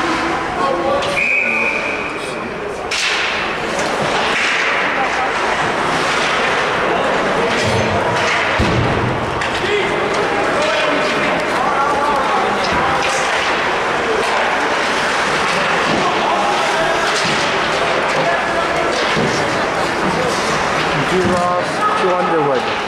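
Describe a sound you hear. Skates scrape and carve across ice.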